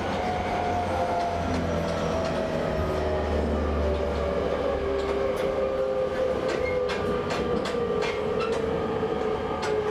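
A train rumbles steadily along the tracks, its motor whining.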